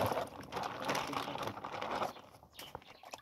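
Pieces of meat tumble from a bag into a plastic tub.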